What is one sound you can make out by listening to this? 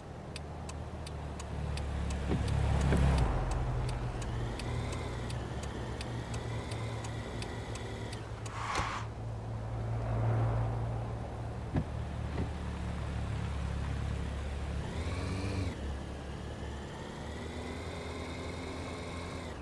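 A car engine accelerates.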